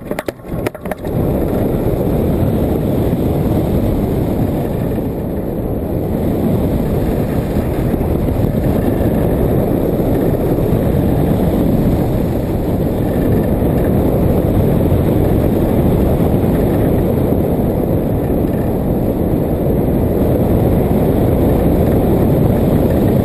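Wind roars loudly and steadily across a microphone.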